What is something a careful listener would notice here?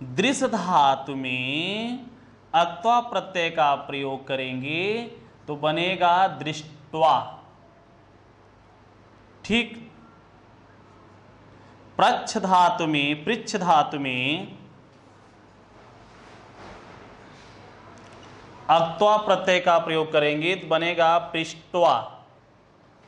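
A man speaks clearly and steadily, as if explaining, close by.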